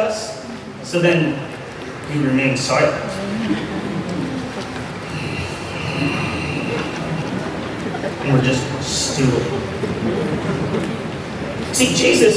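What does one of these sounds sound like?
A man speaks with feeling into a microphone in an echoing room.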